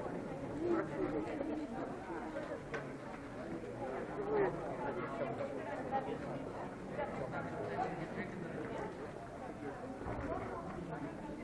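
Young men and women chatter in a large echoing hall.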